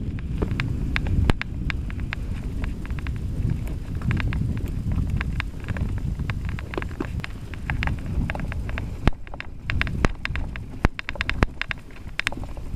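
Bicycle tyres roll and crunch over a bumpy dirt trail.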